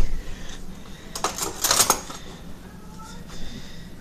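Metal cutlery rattles in a drawer.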